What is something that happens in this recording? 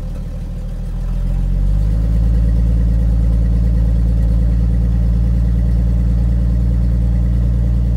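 An engine revs up and holds a louder, deeper hum.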